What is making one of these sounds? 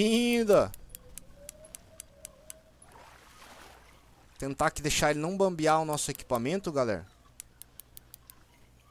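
A fishing reel clicks in quick, even ticks.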